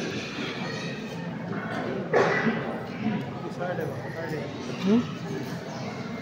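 A large crowd of children chatters in an echoing hall.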